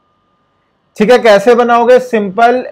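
A man speaks clearly and steadily into a close microphone.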